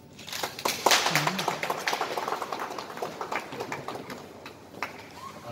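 A crowd claps and cheers nearby.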